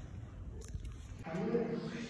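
Metal dumbbells clank against a rack.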